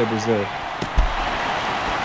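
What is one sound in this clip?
A bat cracks against a baseball.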